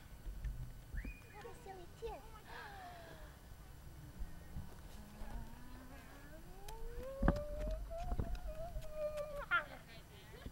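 A toddler babbles and coos.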